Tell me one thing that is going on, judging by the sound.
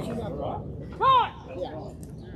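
A man shouts a short call loudly outdoors.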